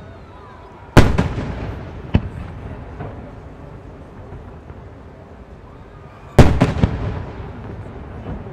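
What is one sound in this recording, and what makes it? Fireworks burst with loud booming bangs that echo away.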